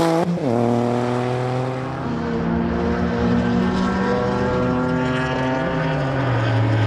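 A racing car engine roars loudly at high revs.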